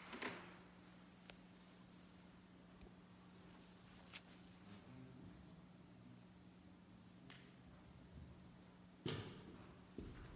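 Footsteps thud softly on a carpeted floor.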